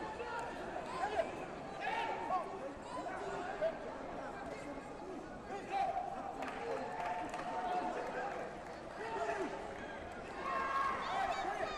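A crowd of spectators chatters and calls out in a large echoing hall.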